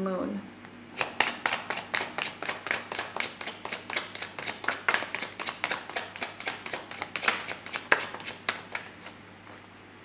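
Playing cards are shuffled with quick riffling clicks.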